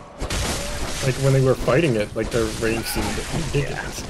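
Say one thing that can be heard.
A blade slashes and strikes flesh with wet impacts.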